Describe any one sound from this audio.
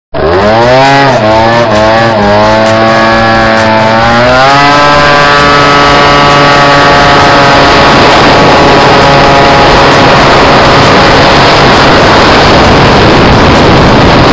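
A small motorbike engine revs high, its pitch rising through the gears and then holding at a steady whine.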